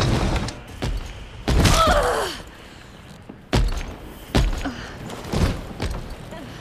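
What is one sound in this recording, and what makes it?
Heavy blows and thuds land in a struggle.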